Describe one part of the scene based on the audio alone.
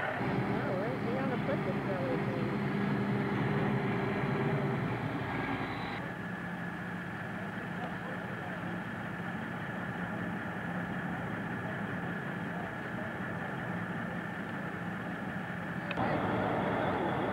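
A diesel truck engine idles with a steady low rumble.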